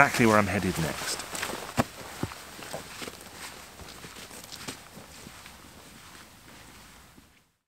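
Footsteps crunch on grass and leaves, fading away.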